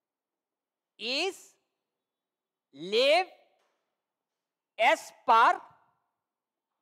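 A man speaks in short bursts through a microphone.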